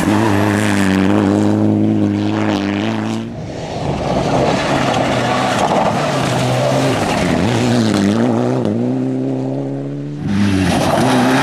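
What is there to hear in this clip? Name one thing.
A rally car engine roars loudly, revving up and down through the gears.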